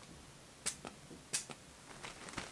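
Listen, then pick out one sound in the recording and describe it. A perfume atomiser sprays in short hissing bursts.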